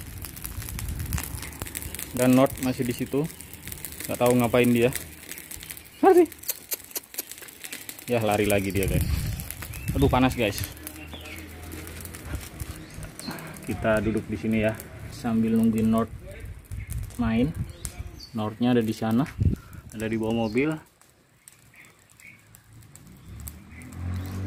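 Burning weeds crackle faintly.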